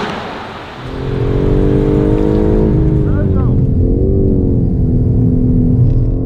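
A car engine revs loudly with a deep, rising roar from inside the car.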